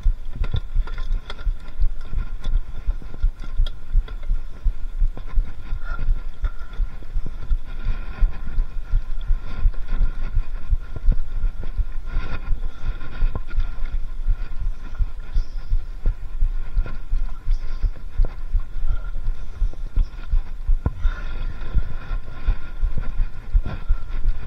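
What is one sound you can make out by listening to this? Bicycle tyres crunch and rattle over a bumpy dirt trail.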